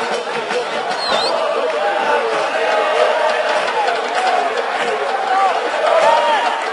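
A large crowd chants and cheers outdoors.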